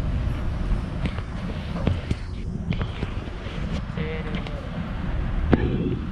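An escalator hums and rattles steadily.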